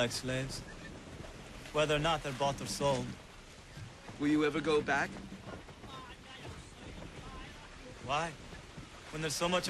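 A young man speaks calmly nearby.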